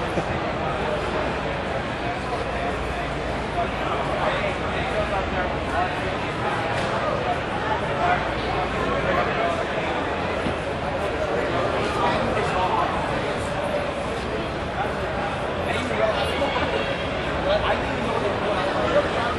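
A crowd of people chatters in a busy indoor hall.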